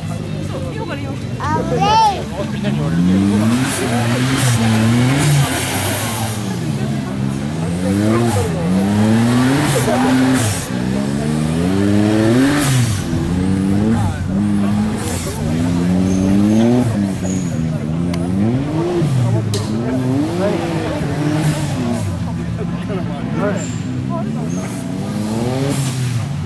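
An off-road vehicle's engine revs hard, rising and falling over and over.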